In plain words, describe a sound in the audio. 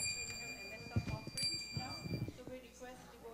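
A harmonium plays sustained notes.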